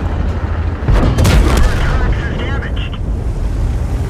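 A shell explodes with a heavy blast.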